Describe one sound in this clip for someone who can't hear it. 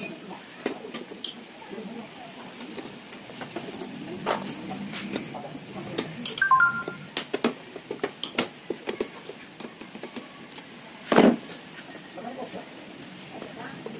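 Metal tools click and clink against metal engine parts.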